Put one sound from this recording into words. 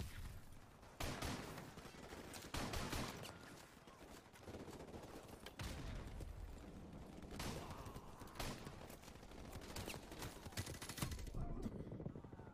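Guns fire loud, sharp blasts.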